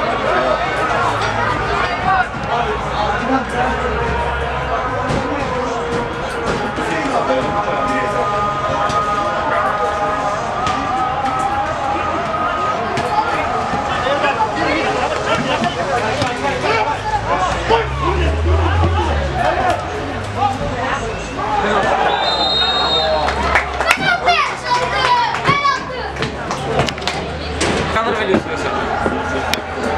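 Men shout to each other across an open outdoor field.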